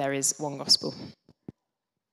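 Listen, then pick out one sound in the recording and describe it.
A young woman speaks calmly into a microphone over loudspeakers in an echoing hall.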